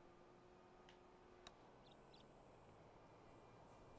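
A golf club strikes a ball.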